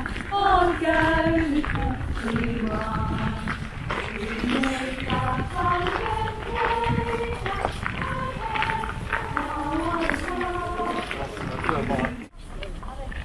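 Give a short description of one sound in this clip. A group of people sings together in chorus outdoors.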